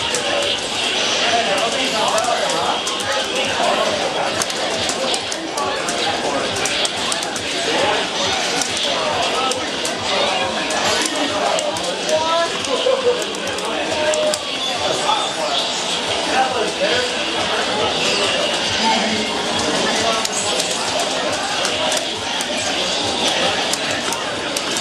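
Fighting game punches, blasts and effects crackle loudly from a television speaker.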